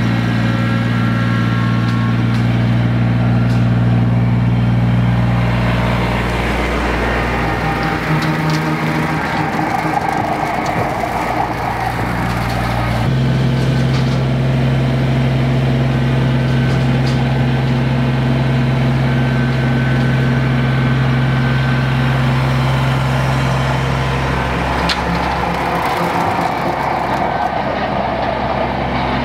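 A tractor engine drones steadily nearby.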